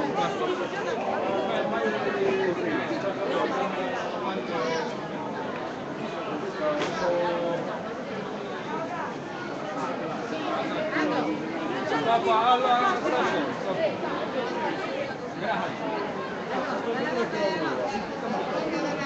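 Several men and women talk and chatter nearby outdoors.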